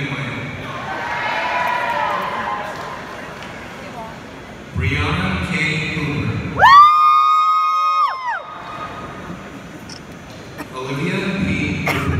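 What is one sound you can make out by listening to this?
A large crowd murmurs and chatters in a big echoing hall.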